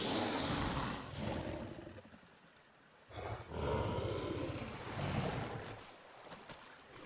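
A small creature chirps and growls close by.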